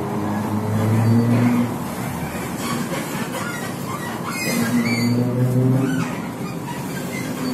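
A bus engine hums steadily from inside while riding along.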